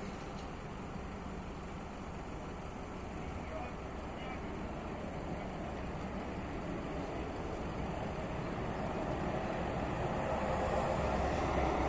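A crane engine hums steadily.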